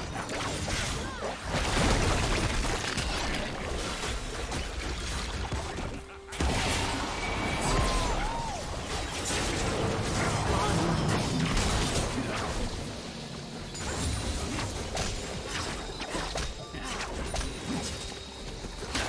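Spell effects whoosh and crackle in a fast-paced game battle.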